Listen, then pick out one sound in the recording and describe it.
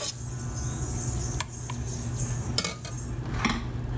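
Soft onion slices drop into a metal jar.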